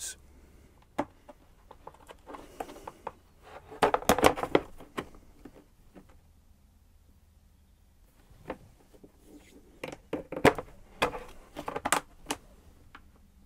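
Plastic parts of a rack click and clatter as hands fold and unfold them.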